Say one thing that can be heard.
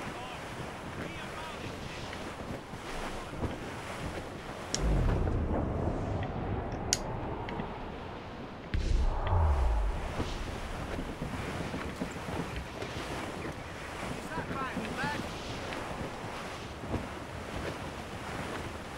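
Waves wash against a sailing ship's hull.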